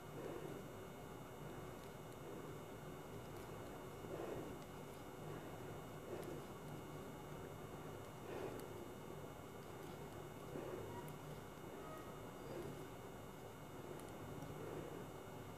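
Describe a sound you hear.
Knitting needles click and tap softly against each other.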